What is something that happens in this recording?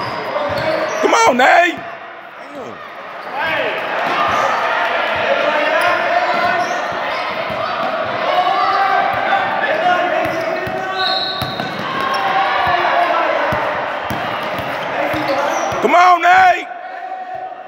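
A referee blows sharp blasts on a whistle.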